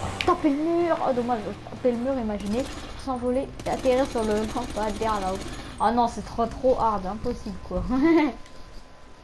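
A motorcycle engine revs up and down repeatedly.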